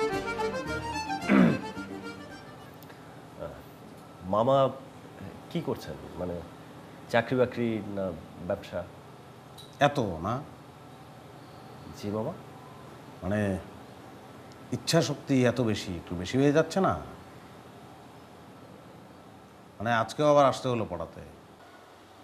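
A man speaks calmly nearby, in pauses.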